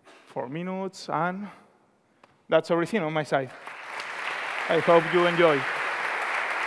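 A man speaks loudly through a microphone in a large hall.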